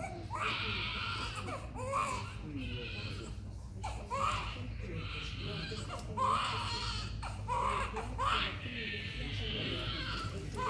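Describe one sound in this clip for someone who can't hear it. A baby cries loudly in repeated wails.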